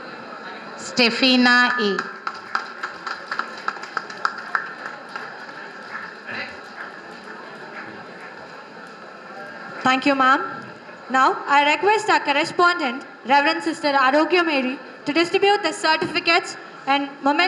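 A woman speaks into a microphone, heard through a loudspeaker in a large room.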